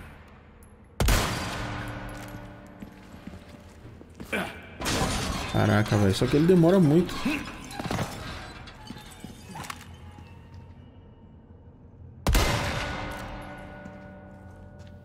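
A rifle shot booms and echoes away.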